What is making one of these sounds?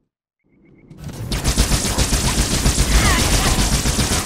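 Crystal weapons fire rapidly with sharp hissing bursts.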